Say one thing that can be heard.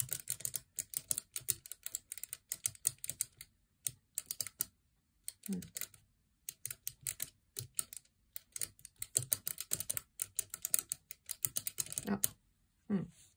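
Fingers flick abacus beads with rapid clicks.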